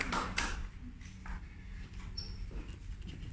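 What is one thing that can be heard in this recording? A woman's high heels click on a hard floor in a large echoing hall.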